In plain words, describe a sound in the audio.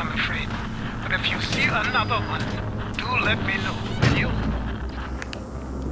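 A metal door handle clicks and a door swings open.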